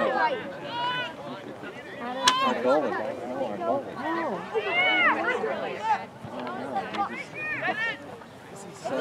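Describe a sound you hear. Children shout across an open field.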